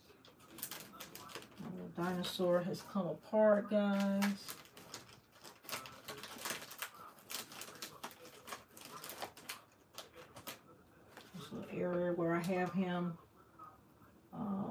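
Plastic wrappers crinkle as hands handle them.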